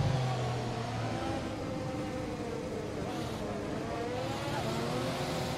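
A racing car engine whines steadily at high revs, shifting pitch as the car takes corners.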